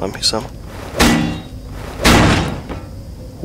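A heavy metal door bangs open.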